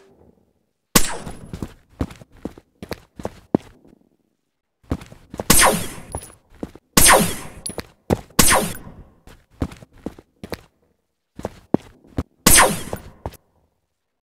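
A ray gun fires in sharp bursts, again and again.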